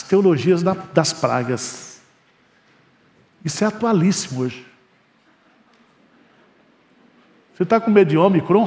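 A middle-aged man speaks with feeling into a microphone, in short phrases with pauses.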